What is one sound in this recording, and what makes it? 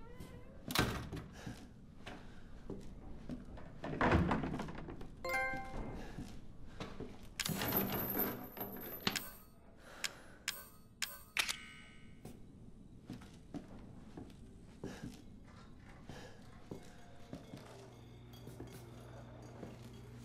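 Footsteps thud on creaky floorboards.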